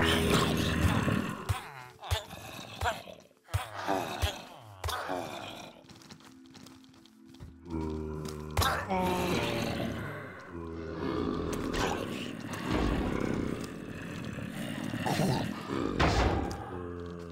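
Zombies groan and moan low.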